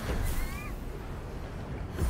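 Wings whoosh as a figure glides.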